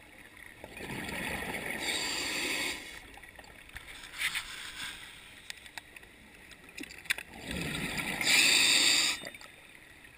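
Bubbles from a diver's breathing gurgle and rush underwater.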